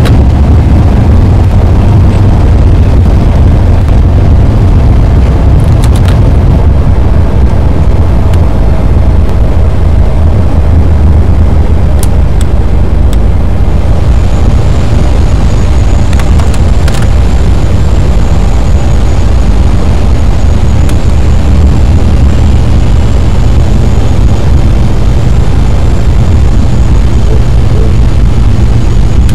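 Jet engines roar with a steady low drone.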